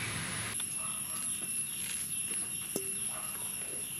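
Wet dough is scraped into a metal bowl with soft knocks.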